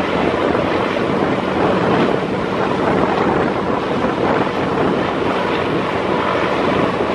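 A ferry's engine rumbles steadily as it approaches.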